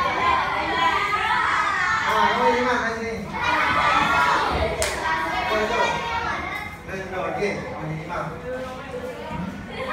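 Children talk and chatter in the room.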